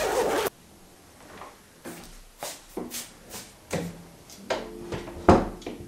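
A door opens and closes.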